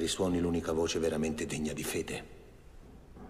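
A man speaks forcefully, close by.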